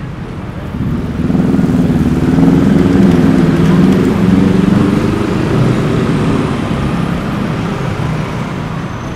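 A motorbike engine drones loudly nearby.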